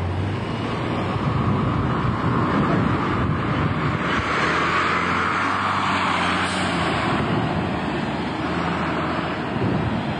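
A bus engine rumbles as the bus pulls away.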